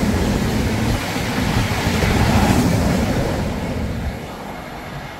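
A train rushes past close by with a loud roar.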